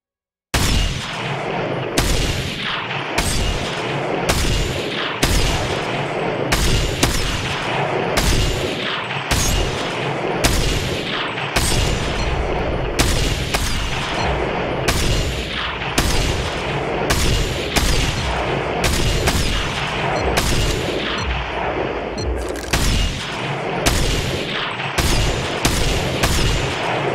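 Loud rifle shots ring out one after another, each with a long echoing tail.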